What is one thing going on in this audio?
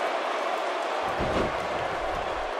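A body slams heavily onto a wrestling mat with a deep thud.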